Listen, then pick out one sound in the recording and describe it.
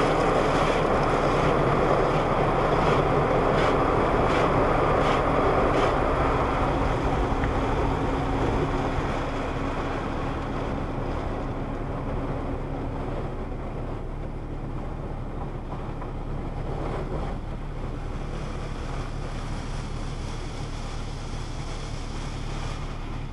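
Water sprays and splashes against a car's windscreen.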